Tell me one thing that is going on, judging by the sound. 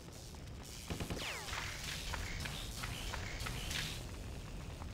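A heavy blow thuds against a body.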